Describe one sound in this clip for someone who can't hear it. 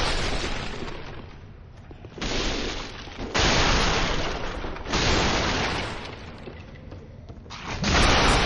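Armoured footsteps thud on wooden boards.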